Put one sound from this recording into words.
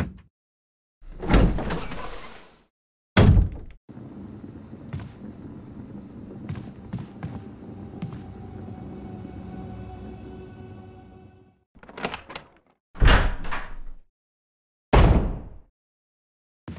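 A heavy wooden door creaks slowly open.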